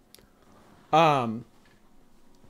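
A young man lets out a short loud exclamation close to a microphone.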